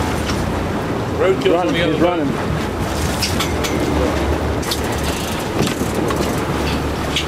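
A boat engine rumbles low and steady.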